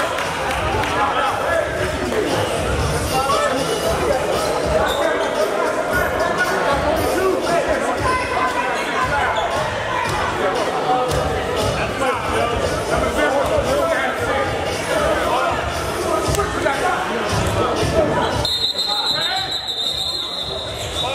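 A crowd chatters and calls out in an echoing gym.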